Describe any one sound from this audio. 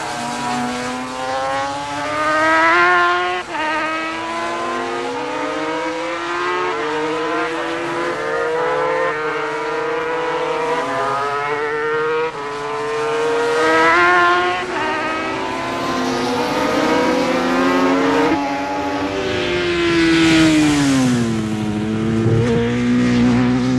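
A racing motorcycle engine screams at high revs, rising and dropping in pitch as it shifts gears.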